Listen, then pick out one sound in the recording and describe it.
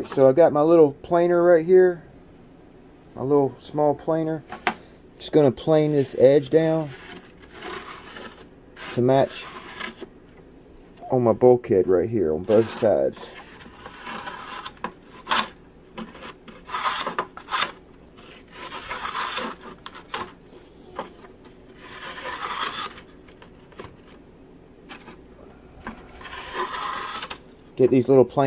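Light wooden parts tap and click as they are handled.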